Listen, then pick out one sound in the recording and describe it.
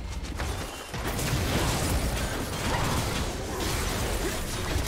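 Game spell effects crackle and whoosh in a fast fight.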